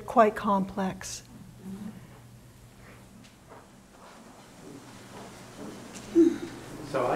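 An elderly woman speaks with animation nearby.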